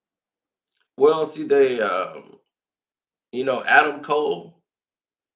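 A man speaks calmly and close to the microphone in two short bursts.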